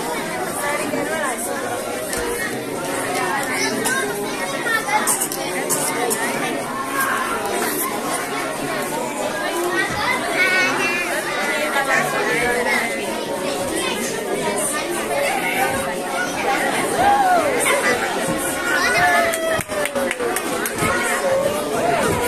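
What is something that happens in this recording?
A crowd of children chatter and call out nearby, echoing in a hall.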